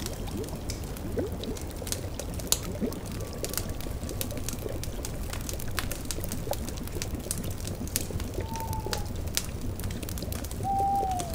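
A fire crackles and pops steadily.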